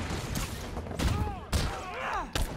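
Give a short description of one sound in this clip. An energy blast bursts with a loud whoosh.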